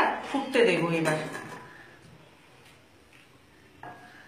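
A metal lid clinks onto a cooking pot.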